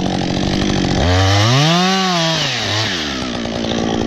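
A chainsaw engine revs up and back down.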